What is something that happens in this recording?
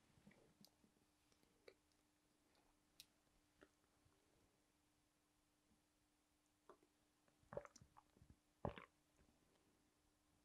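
A plastic water bottle crinkles and taps.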